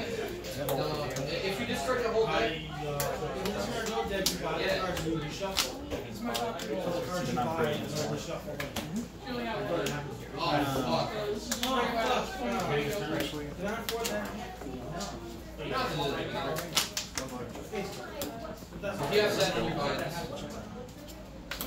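Playing cards are shuffled in the hands, riffling softly.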